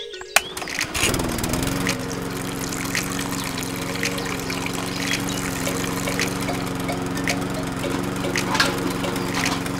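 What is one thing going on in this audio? A small toy motor hums steadily.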